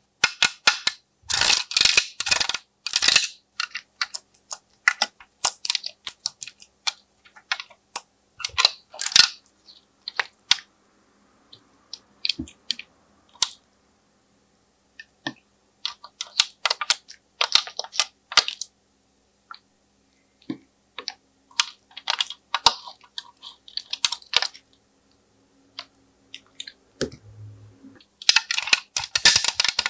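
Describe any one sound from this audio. Fingernails tap and click on a plastic tray.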